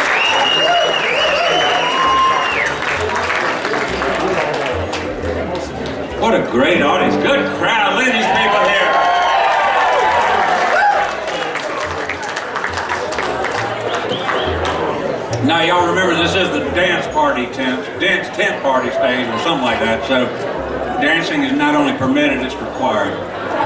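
A live band plays through loudspeakers outdoors.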